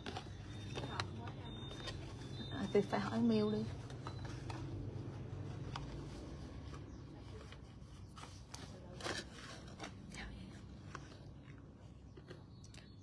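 Cardboard boxes rustle and tap as they are handled.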